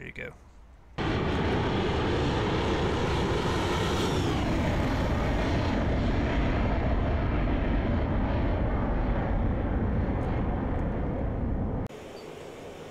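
A jet engine roars loudly at takeoff, then slowly fades into the distance.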